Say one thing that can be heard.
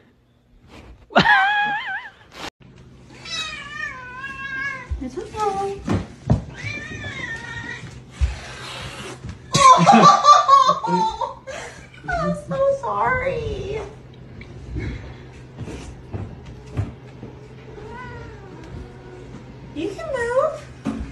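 A woman talks to a cat close by.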